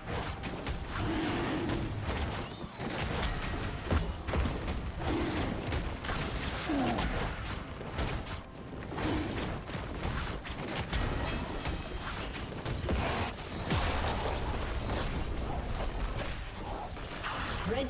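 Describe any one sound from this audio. Magic blasts and clashes crackle in a fight.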